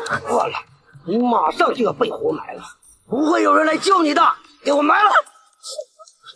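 A middle-aged man speaks angrily up close.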